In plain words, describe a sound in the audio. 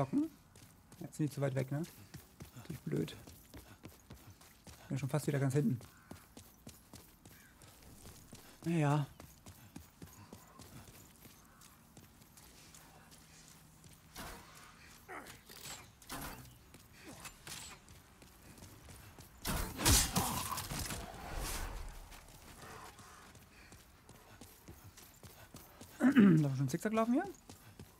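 Footsteps crunch over debris and stone.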